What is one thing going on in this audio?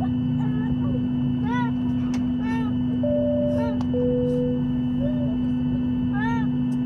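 A plane's engines hum steadily in the cabin.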